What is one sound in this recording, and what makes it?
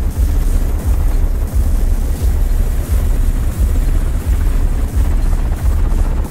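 A helicopter's rotor thuds in a fast, steady beat close overhead.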